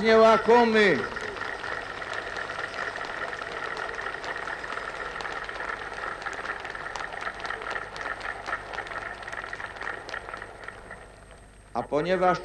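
A large crowd cheers and applauds in the distance.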